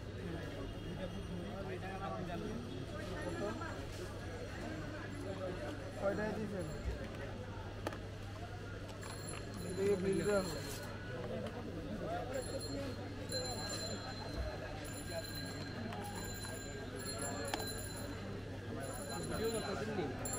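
A crowd of men chatters all around.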